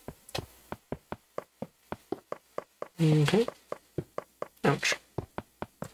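Footsteps tap quickly and evenly on a wooden ladder.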